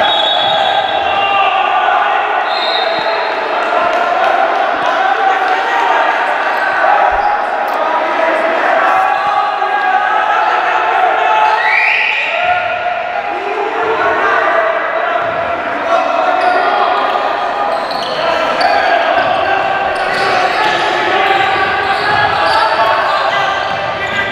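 A crowd chants loudly in a large echoing hall.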